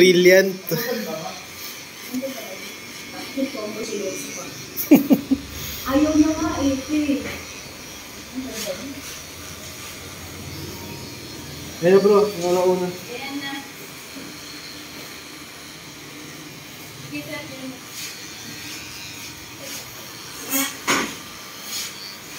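Electric hair clippers buzz steadily close by.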